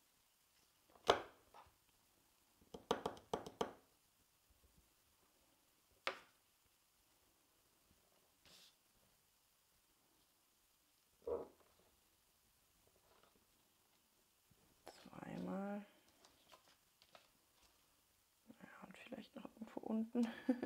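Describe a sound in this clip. Sheets of paper rustle and tap against a tabletop.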